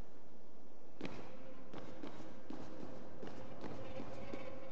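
Footsteps tap on a stone floor in a large echoing hall.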